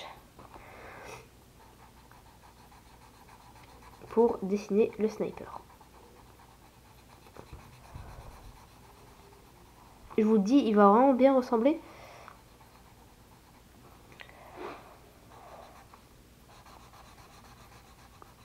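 A colored pencil scratches softly across paper.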